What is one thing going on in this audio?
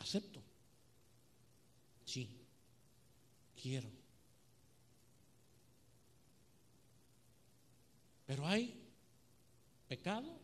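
A middle-aged man speaks slowly into a microphone, with long pauses between phrases.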